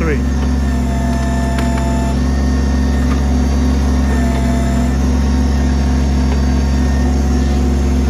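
A tree stump cracks and splinters as a backhoe pries it apart.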